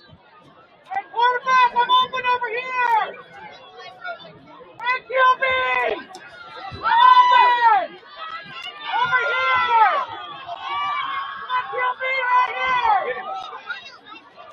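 A crowd in the stands shouts and cheers loudly outdoors.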